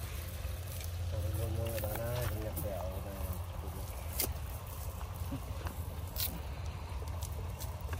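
A fishing net rustles as hands untangle it.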